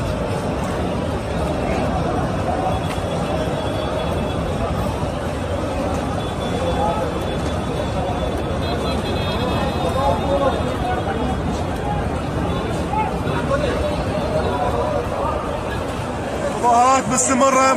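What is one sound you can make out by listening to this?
A large crowd murmurs and chants outdoors in the distance.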